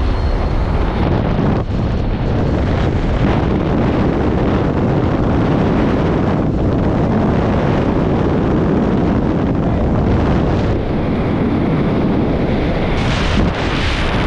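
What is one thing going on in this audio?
Wind roars loudly during free fall.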